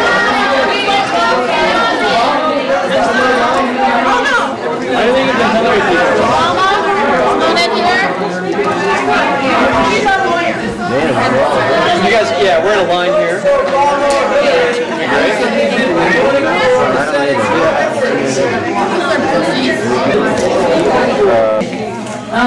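A crowd of men and women chatters and talks over one another.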